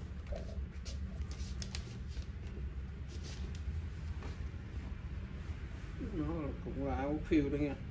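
A cotton jacket rustles as a man pulls it on.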